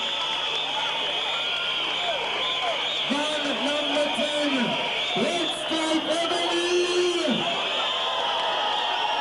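A live band plays electric guitars.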